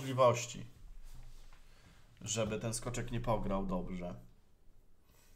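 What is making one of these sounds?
A young man speaks calmly and close to a microphone.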